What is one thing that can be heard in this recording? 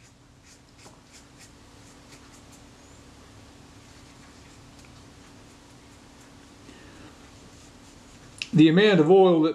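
A cotton swab rubs and scratches softly on plastic sheeting.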